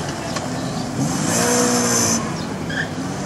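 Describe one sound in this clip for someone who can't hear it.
Tyres squeal on cobblestones as the car turns sharply.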